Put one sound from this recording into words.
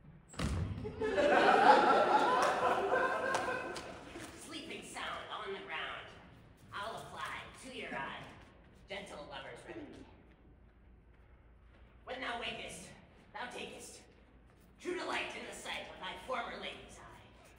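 A man sings loudly in a large echoing hall.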